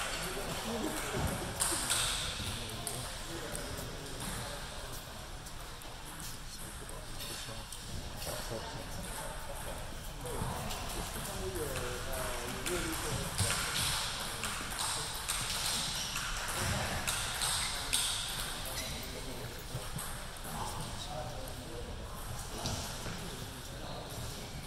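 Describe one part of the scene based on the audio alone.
A table tennis ball clicks as it bounces.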